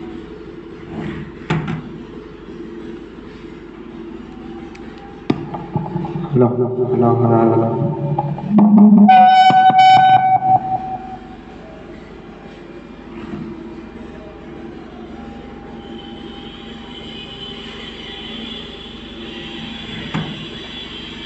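Hands knock and bump against a plastic speaker.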